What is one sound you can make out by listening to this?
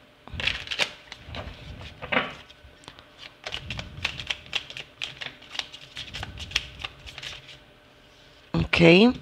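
Playing cards are shuffled with quick, crisp flicks and taps.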